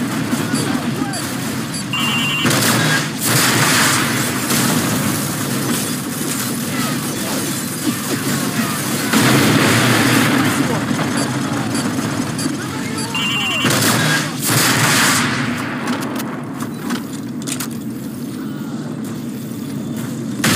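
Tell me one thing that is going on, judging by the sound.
Gunfire rattles in bursts.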